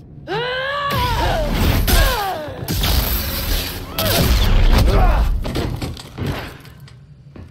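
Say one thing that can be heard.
Lightsabers clash with heavy impacts.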